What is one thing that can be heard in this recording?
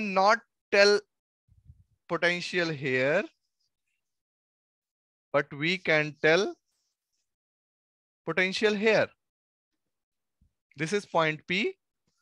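A man speaks calmly through a close headset microphone, in short bursts with pauses.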